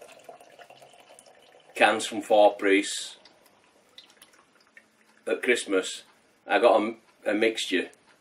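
Beer pours from a can into a glass.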